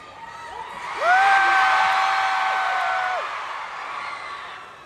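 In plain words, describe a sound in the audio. A crowd cheers and screams.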